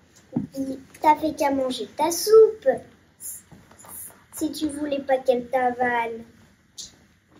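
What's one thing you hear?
A young girl speaks calmly and close by.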